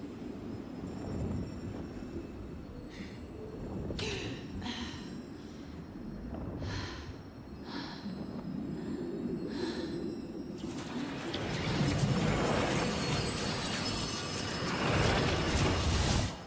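Deep water rumbles and bubbles in a low murmur.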